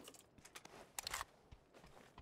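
A rifle is picked up with a short metallic clatter.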